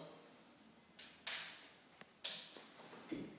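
A stairlift seat clicks sharply.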